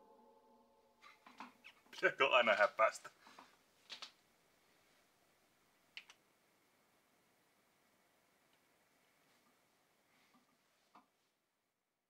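Switches and knobs click now and then.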